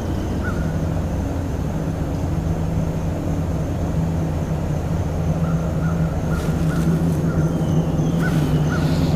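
A small electric boat motor hums steadily.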